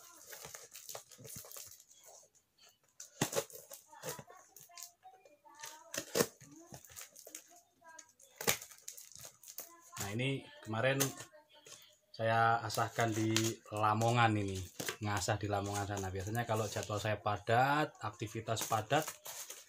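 Paper rustles as a parcel is handled.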